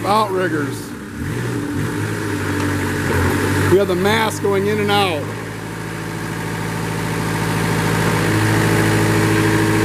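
A diesel engine idles steadily close by, growing slightly louder toward the end.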